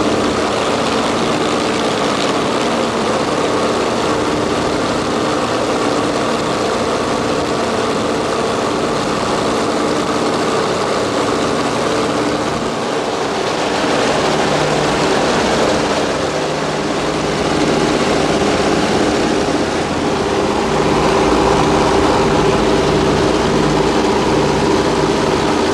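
Wind rushes past an aircraft in flight.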